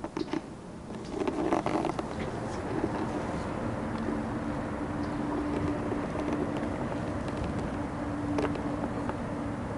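Wind blows past outdoors on open water.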